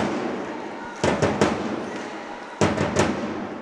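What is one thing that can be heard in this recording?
A hockey stick slaps a puck.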